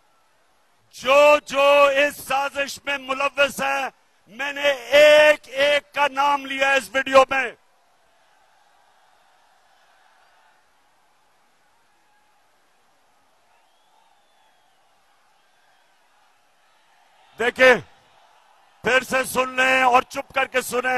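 A man shouts forcefully into a microphone over loudspeakers.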